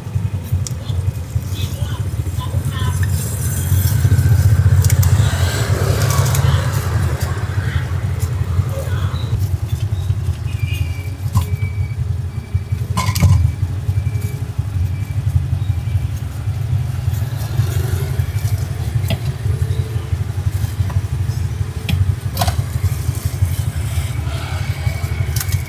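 Banana leaves rustle and crinkle as food is wrapped.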